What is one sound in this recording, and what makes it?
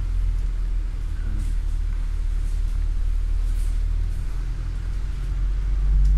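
A bus engine rumbles low and steady close by.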